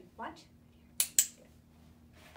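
A woman clicks a dog-training clicker sharply.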